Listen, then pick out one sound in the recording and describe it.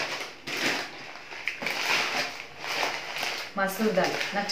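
A plastic packet crinkles and rustles in someone's hands.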